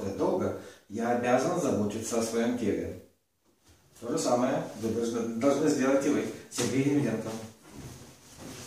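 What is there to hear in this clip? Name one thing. A middle-aged man talks with animation close by.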